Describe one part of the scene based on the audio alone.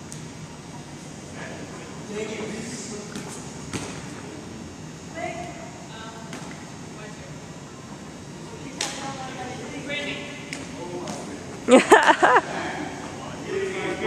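Young people talk and call out in a large echoing hall.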